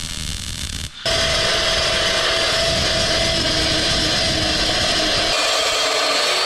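A metal chop saw screams as it cuts through steel.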